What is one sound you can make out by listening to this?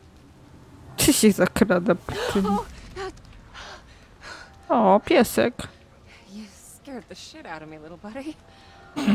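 A young woman in a game exclaims in relief.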